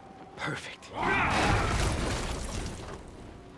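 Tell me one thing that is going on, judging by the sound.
A heavy body crashes down with a loud thud.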